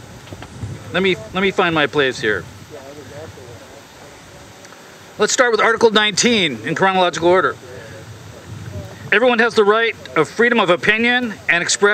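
An elderly man speaks into a microphone outdoors, reading out in a steady voice.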